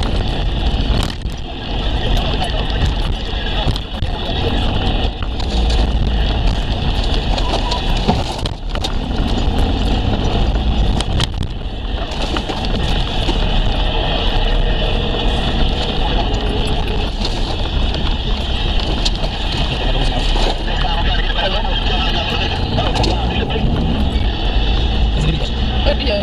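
A vehicle's body rattles and knocks over bumps.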